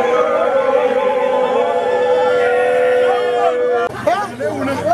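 A crowd of men and women sings and chants loudly outdoors.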